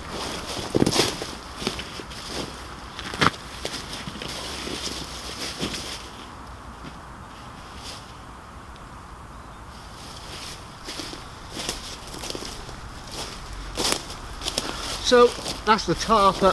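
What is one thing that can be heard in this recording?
Footsteps crunch and rustle through dry leaves.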